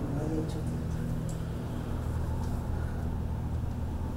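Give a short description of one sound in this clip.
An elderly woman speaks calmly.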